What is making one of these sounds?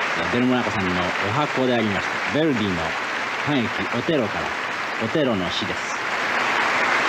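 A man sings with an orchestra in a large hall.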